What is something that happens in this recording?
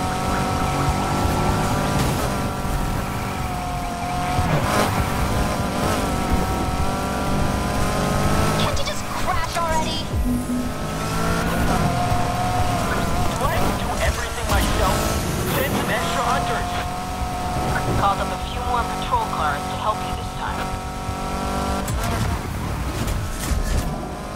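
A car engine roars at high revs and shifts through gears.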